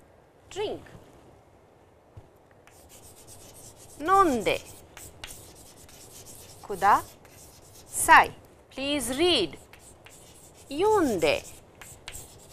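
A woman speaks slowly and clearly, in short phrases, close to a microphone.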